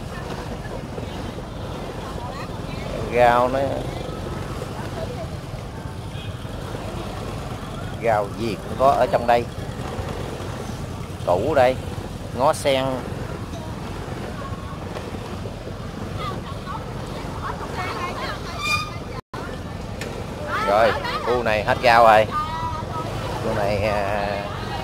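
A motorbike engine hums at low speed close by.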